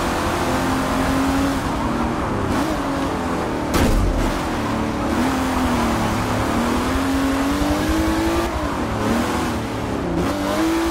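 A racing car engine roars and revs up and down through the gears.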